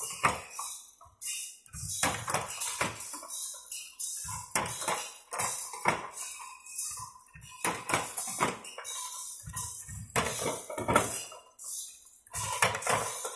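A metal hand tool clicks and clanks against a saw blade in a steady rhythm.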